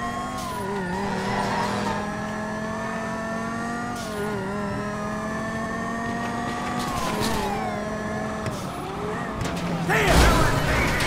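A car engine hums steadily and rises and falls in pitch as the car speeds up and slows down.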